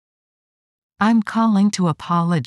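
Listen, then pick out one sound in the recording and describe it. A young woman speaks calmly and clearly.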